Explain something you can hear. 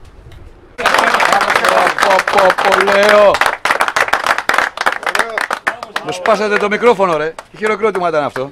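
Men clap their hands.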